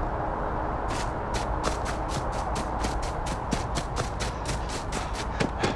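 Quick footsteps rustle through grass and leafy plants.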